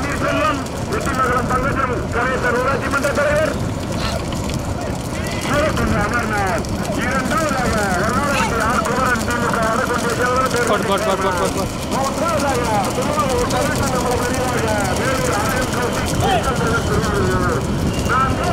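Men shout loudly to drive on the bulls.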